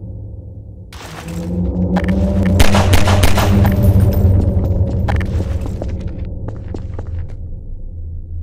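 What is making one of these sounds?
A huge monster roars loudly.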